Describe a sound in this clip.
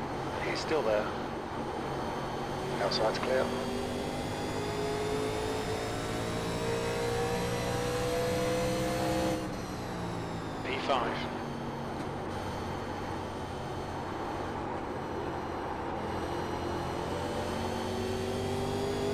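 Race car engines drone steadily, their pitch slowly rising and falling.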